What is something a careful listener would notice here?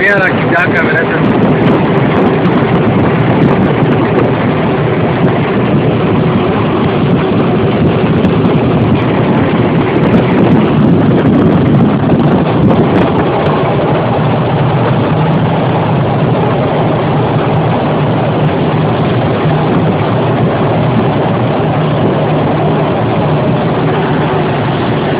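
A vehicle engine drones steadily while driving along a road.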